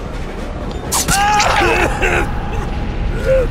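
A weapon strikes with a heavy slashing hit.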